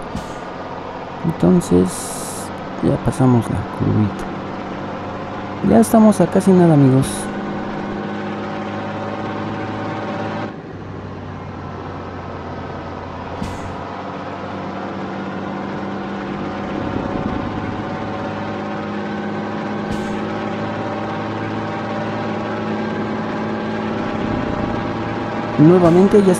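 A truck engine hums steadily as it drives and slowly picks up speed.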